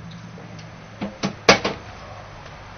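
A metal grill lid bangs shut.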